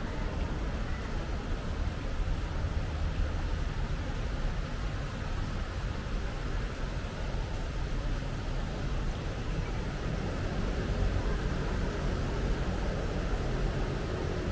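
Small fountain jets splash softly into a pool.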